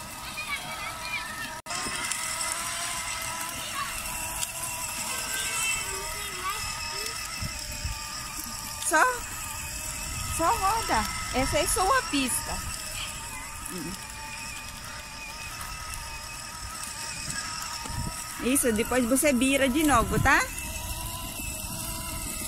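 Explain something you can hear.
A toy electric motorbike's motor whirs steadily.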